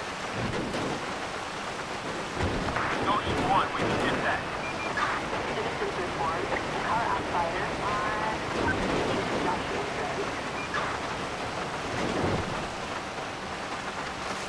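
Tyres crunch over dirt and gravel.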